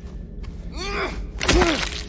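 A metal pipe strikes a creature with a heavy thud.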